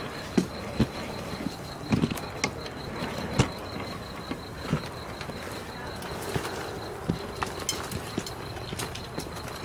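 Footsteps scuff on dry ground.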